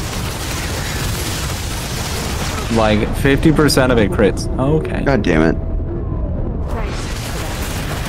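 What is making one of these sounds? A laser weapon hums and crackles as it fires.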